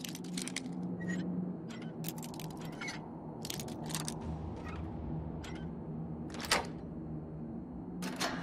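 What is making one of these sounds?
A metal lockpick scrapes and clicks inside a lock.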